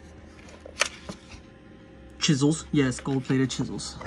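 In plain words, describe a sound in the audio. Stiff paper rustles.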